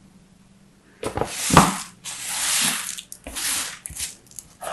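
Crumbly soap shavings crunch and rustle under fingers.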